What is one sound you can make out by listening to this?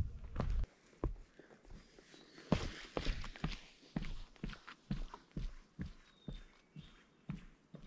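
Footsteps thud on a wooden plank walkway.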